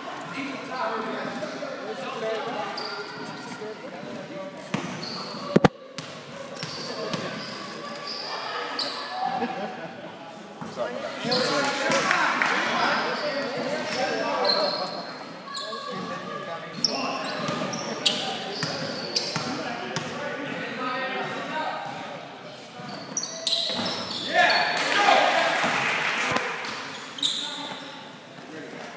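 Sneakers squeak sharply on a hardwood gym floor.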